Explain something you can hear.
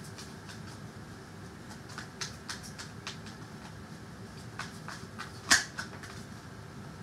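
Playing cards are shuffled with soft, quick flicking clicks.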